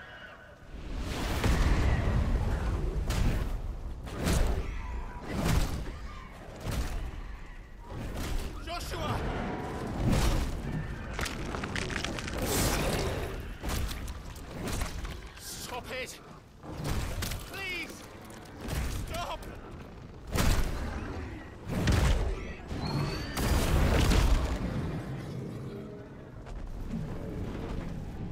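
Heavy booming impacts thunder.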